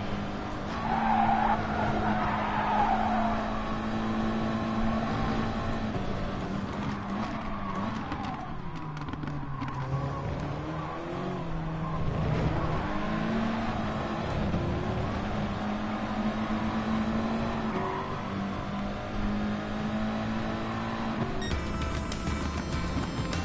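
A racing car engine drones steadily and shifts pitch with the gears.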